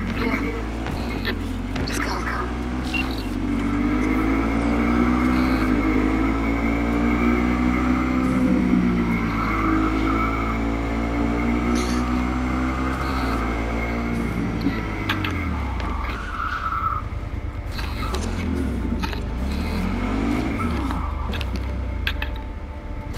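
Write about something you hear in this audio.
A motorcycle engine roars and revs up and down.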